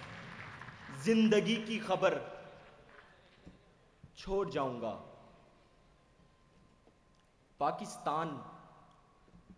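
A young man speaks loudly and with passion into a microphone in a large echoing hall, pausing between phrases.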